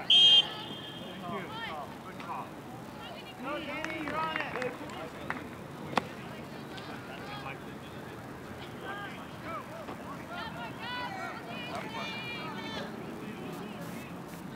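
Young people shout and call out across an open field in the distance.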